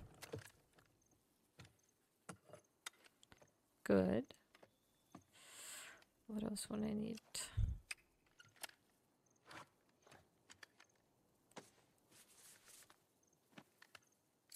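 Metal parts of a shotgun click and clunk as they are handled.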